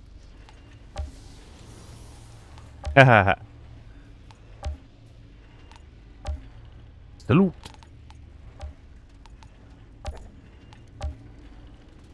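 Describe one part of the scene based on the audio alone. Soft interface clicks tick now and then.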